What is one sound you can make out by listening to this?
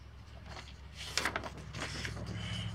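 Paper rustles as a woman handles sheets of paper.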